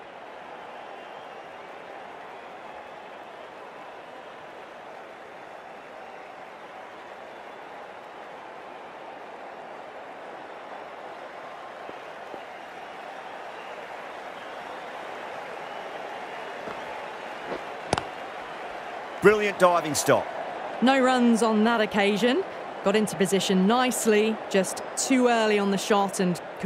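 A large crowd murmurs steadily in a stadium.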